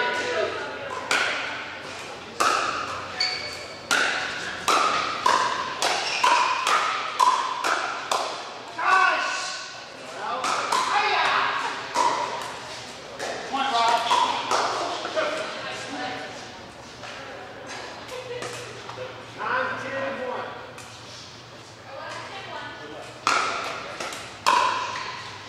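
Paddles pop sharply against a plastic ball in a large echoing hall.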